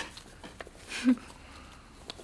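A young woman laughs softly nearby.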